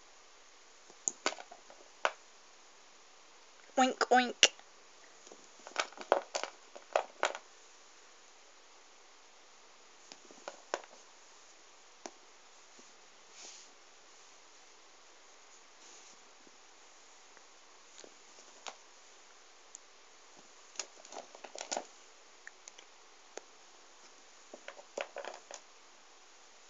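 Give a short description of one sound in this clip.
Small rubber erasers click and tap softly as they are picked up and handled.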